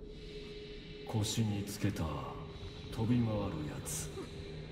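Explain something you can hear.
A young man asks a question calmly, close by.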